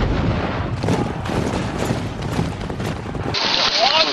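Horses gallop over grass.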